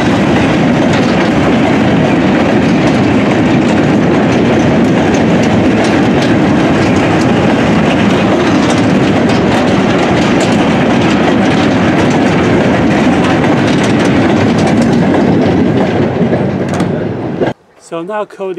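Wagon wheels click over rail joints.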